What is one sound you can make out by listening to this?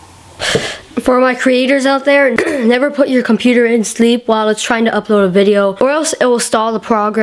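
A boy talks animatedly, close up.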